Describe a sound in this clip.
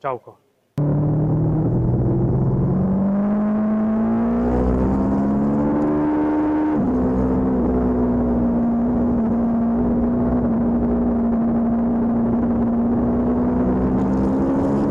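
A motorcycle engine roars loudly close by, its pitch rising and dropping through the gears.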